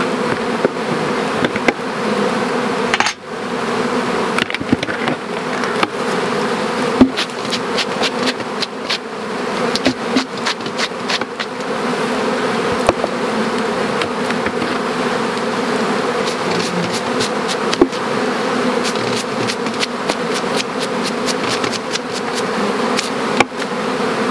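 Wooden hive frames knock and scrape.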